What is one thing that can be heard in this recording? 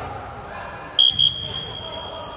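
A referee's whistle blows two short sharp blasts.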